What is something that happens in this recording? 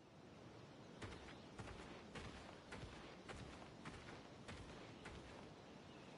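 Footsteps crunch on a dirt path at an even pace.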